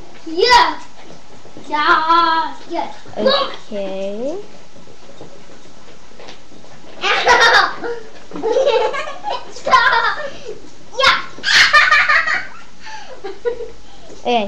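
A young girl squeals and talks excitedly nearby.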